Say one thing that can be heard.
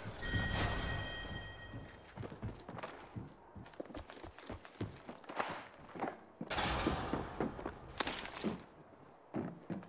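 Footsteps thud quickly on metal.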